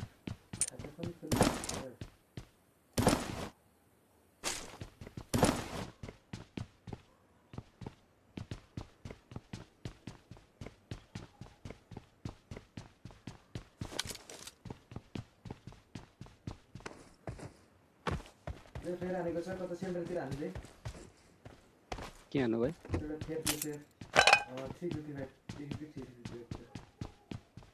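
Footsteps patter quickly and steadily on a hard floor.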